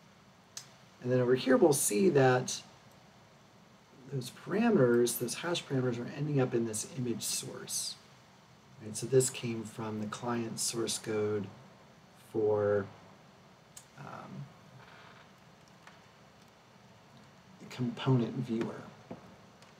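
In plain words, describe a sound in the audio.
A middle-aged man speaks calmly into a nearby microphone, in short bursts with pauses.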